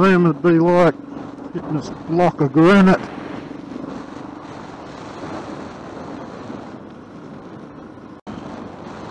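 Tyres hum steadily on a paved road.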